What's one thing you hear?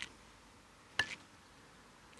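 A putter taps a golf ball with a light click.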